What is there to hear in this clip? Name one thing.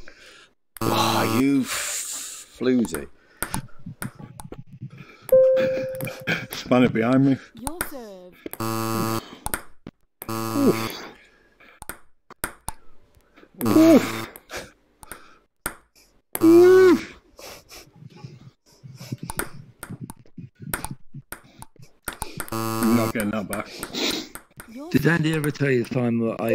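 A ping-pong ball clicks against a table and paddles in quick bounces.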